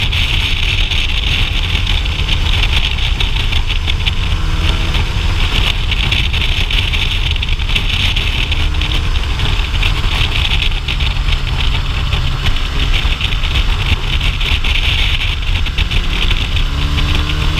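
Wind rushes loudly past a moving rider.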